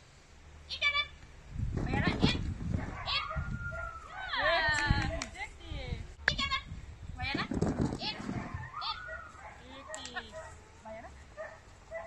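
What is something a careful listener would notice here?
A woman calls out commands to a dog with animation.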